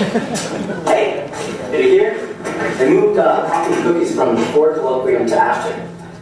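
Another young man answers casually nearby.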